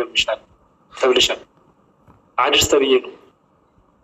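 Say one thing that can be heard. A young woman speaks calmly in short phrases over an online call.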